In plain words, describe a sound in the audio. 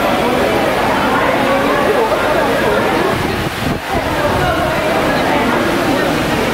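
A crowd of men and women chatters loudly all around.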